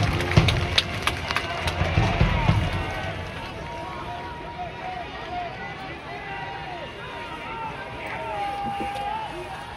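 Young men shout and call out across an open outdoor field.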